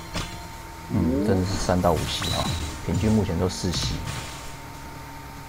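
A game's magical attack blasts and whooshes loudly.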